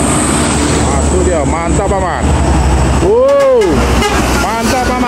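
A bus horn blares a wavering musical tune as the bus approaches.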